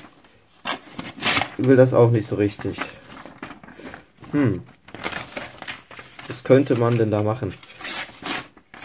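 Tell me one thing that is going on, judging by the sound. A blade slices through paper with a dry scraping rasp.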